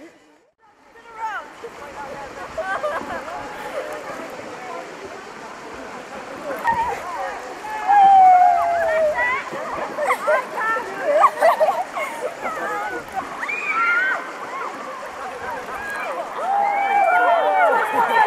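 River water rushes and splashes around swimmers.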